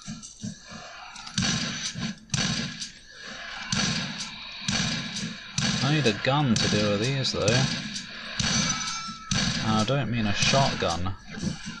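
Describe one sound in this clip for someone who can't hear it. A shotgun fires repeatedly in loud blasts.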